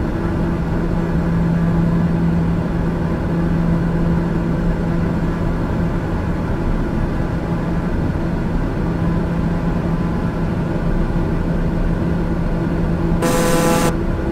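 An aircraft engine drones steadily inside a cabin.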